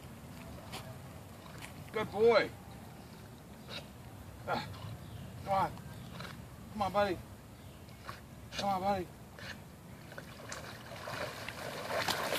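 A dog paddles quietly through water.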